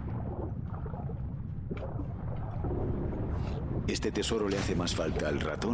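A low, muffled underwater rumble goes on steadily.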